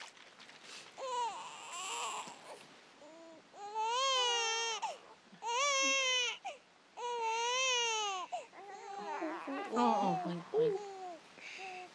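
A middle-aged woman coos and calls out in a high, sing-song voice.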